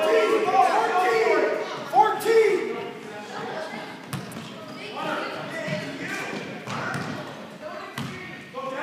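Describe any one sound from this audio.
Adult spectators shout and cheer from the side.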